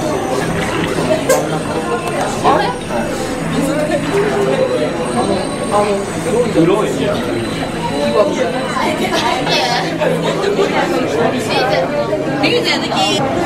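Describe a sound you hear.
A crowd of people chatters nearby in an echoing indoor space.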